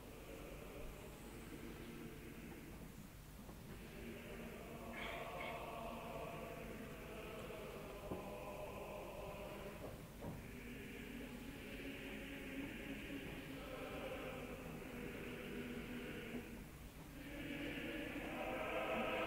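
A woman sings in a high, soaring voice with long held notes.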